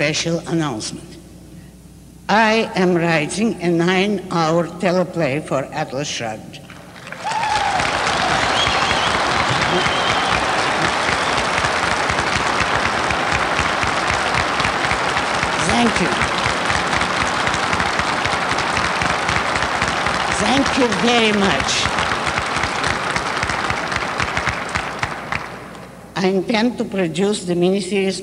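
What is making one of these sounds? An elderly woman speaks with expression into a microphone.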